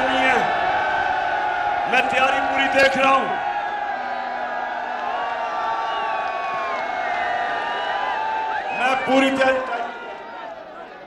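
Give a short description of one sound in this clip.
A large outdoor crowd cheers and chants loudly.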